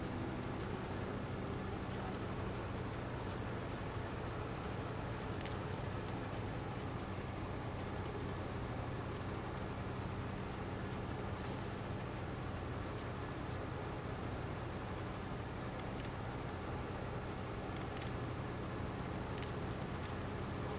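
Snow and gravel crunch under heavy tyres.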